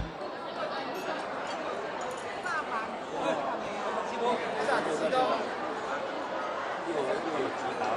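A crowd of people chatters.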